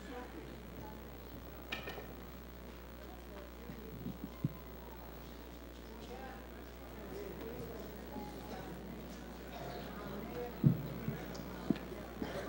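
An elderly woman speaks slowly and solemnly into a microphone.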